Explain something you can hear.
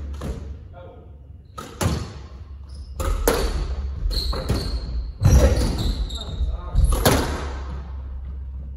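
Shoes squeak on a wooden court floor.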